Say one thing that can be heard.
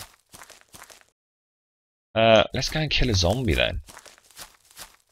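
Footsteps swish through tall grass at a steady pace.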